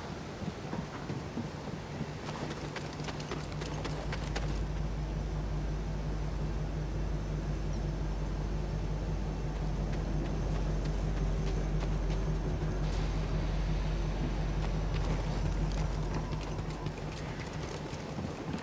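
Footsteps tread on hard metal ground.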